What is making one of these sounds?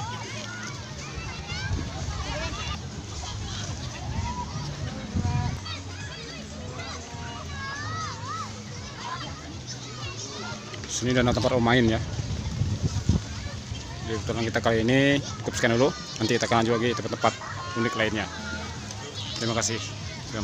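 A crowd of men and women chatter outdoors at a distance.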